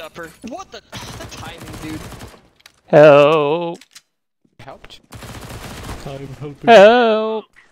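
A submachine gun fires rapid bursts at close range.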